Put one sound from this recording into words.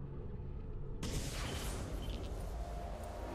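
A horse gallops.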